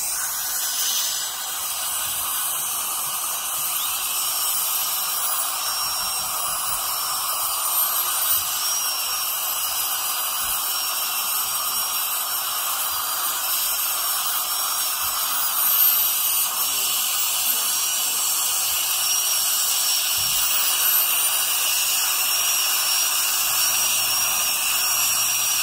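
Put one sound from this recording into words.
A dental drill whines steadily at a high pitch.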